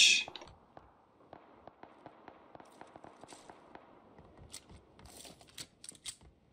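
Footsteps thump on a wooden floor.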